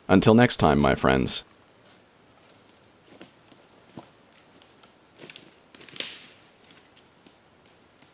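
Footsteps crunch through dry leaves and twigs.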